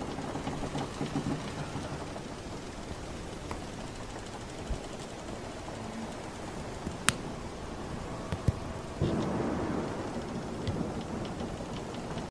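Waves wash and lap steadily against a wooden ship.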